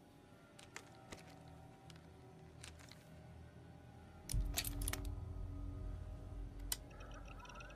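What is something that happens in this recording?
Buttons click on a wrist-mounted computer.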